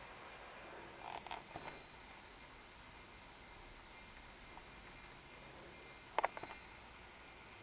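Large paper sheets rustle and flap as they are turned.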